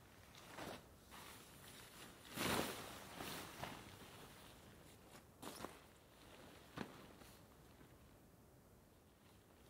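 A canvas tarp flaps and rustles as it is spread out.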